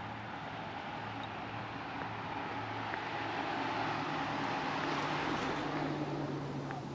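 A bus approaches and drives past, its engine rumbling.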